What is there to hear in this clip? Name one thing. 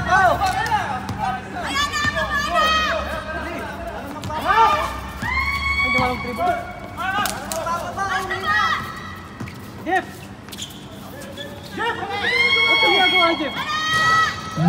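Sneakers squeak sharply on the court surface.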